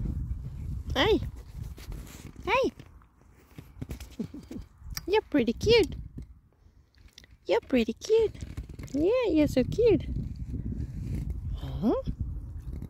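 A small terrier whines.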